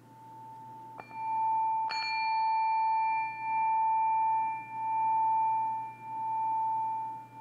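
A singing bowl is struck and rings out brightly, then sustains.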